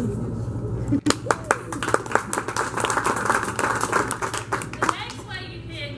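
An audience claps and cheers in a large room.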